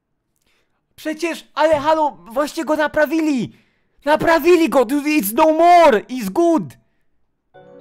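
A young person speaks with animation close to a microphone.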